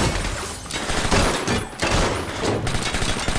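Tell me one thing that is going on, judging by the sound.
Gunshots ring out loudly in rapid bursts.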